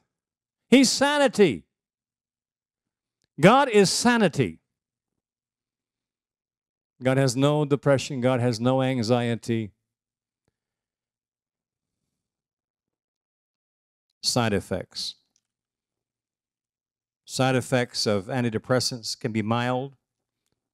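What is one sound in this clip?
An elderly man speaks calmly into a microphone over loudspeakers, with pauses between phrases.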